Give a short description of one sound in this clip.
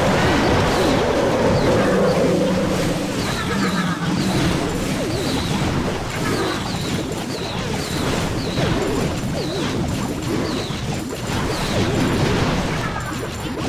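Cartoonish battle sounds of blasts and clashing play steadily.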